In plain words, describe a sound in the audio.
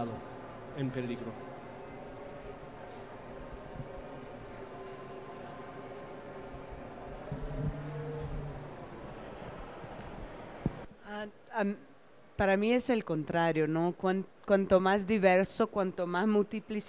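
A woman speaks calmly into a microphone, heard through loudspeakers in a large echoing hall.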